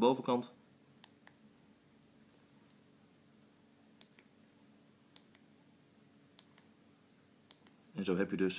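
A small plastic button on a helmet light clicks.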